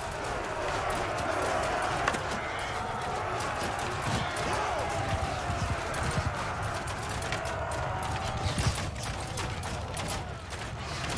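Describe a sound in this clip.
Swords clash against shields and armour in quick, scattered clangs.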